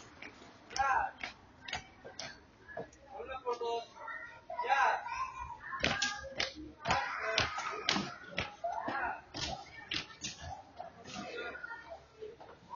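Young people talk and call out nearby.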